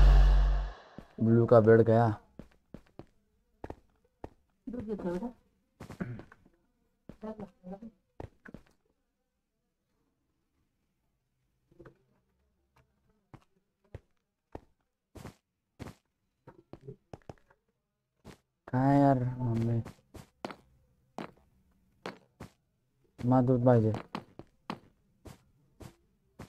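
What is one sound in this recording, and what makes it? Footsteps tap quickly on hard stone.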